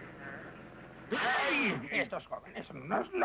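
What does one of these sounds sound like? A loud cartoon crash bangs.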